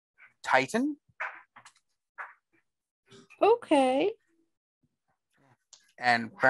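A man speaks with animation over an online call, his voice rising and falling.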